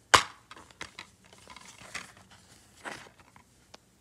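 A plastic disc case clicks open.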